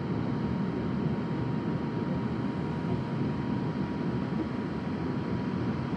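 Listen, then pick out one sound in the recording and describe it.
Water rushes against a ship's hull.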